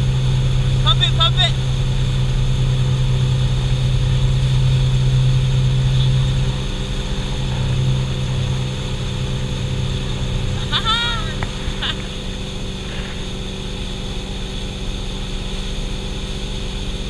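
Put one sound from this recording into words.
Water churns and rushes in a boat's wake.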